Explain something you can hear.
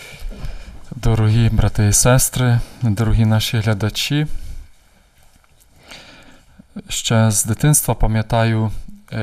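A man reads aloud calmly from a book, heard close through a microphone.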